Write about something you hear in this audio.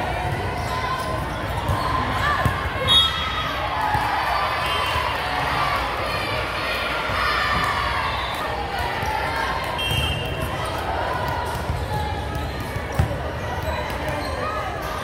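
Many young women chatter and call out in a large echoing hall.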